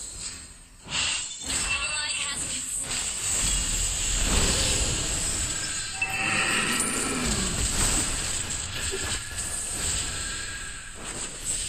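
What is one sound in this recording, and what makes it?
Game sound effects of spells and hits burst and clash.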